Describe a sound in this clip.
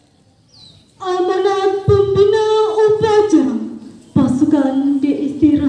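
A man calls out loud, drawn-out commands through a loudspeaker, outdoors.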